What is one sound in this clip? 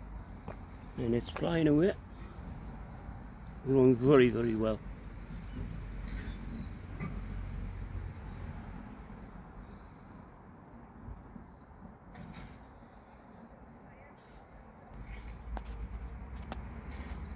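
Wind blows softly outdoors, rumbling low.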